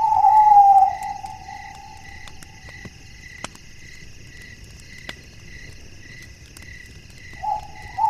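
An owl hoots softly.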